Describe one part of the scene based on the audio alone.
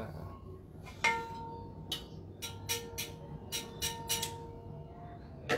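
A wire whisk clinks and rattles against a metal bowl.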